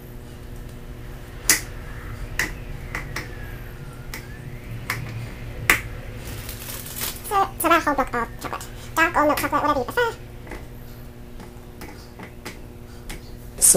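A thin plastic cup knocks and crinkles as it is handled.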